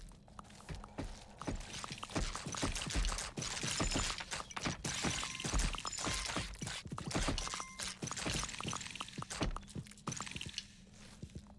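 Hammers knock rapidly on wood.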